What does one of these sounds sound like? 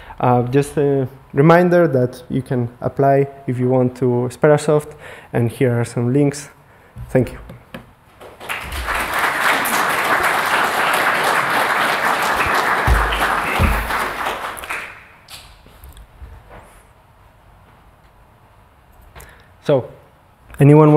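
A young man speaks calmly through a microphone.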